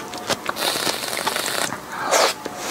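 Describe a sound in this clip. Whipped cream sprays from a can with a hiss.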